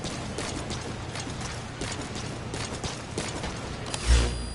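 Footsteps run quickly on a hard surface.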